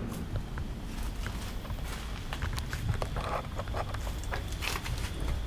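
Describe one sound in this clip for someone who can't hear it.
Footsteps crunch on loose debris.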